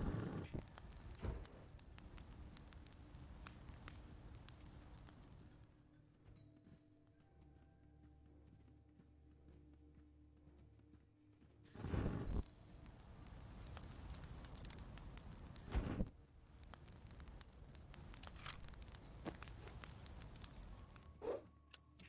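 Flames roar and whoosh in bursts.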